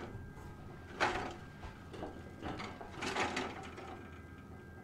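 A heavy metal door scrapes and creaks as it is pushed open.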